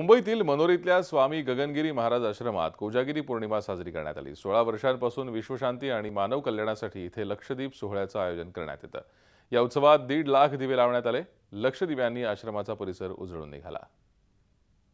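A man speaks steadily into a microphone, like a news presenter.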